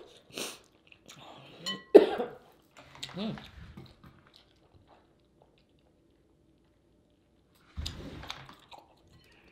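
A woman eats noisily close to a microphone, with wet chewing and smacking.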